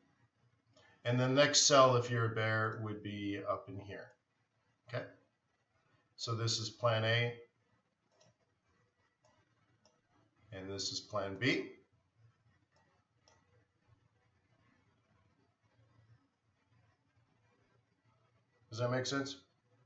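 A middle-aged man speaks calmly into a microphone, in short bursts with pauses.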